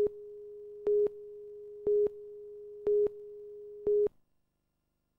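A steady electronic tone hums.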